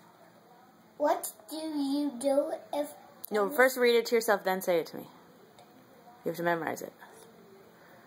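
A young boy reads aloud up close.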